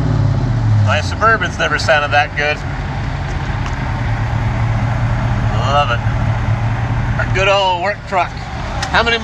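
A pickup truck's engine idles with a steady low rumble.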